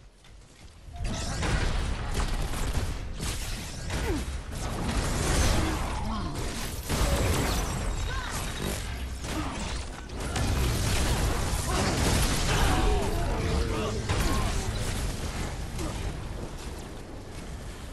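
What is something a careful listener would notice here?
Gunfire and blasts from a game crackle and boom.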